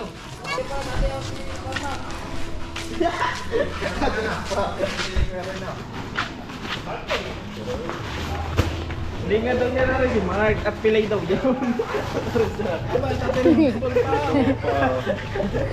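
Footsteps scuff on a concrete path.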